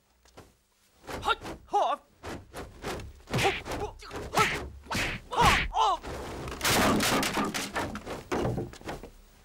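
Fists and kicks land with sharp thuds and whooshes.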